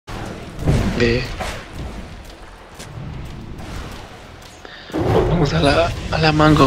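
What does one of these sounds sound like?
Fantasy spell effects whoosh and crackle during a battle.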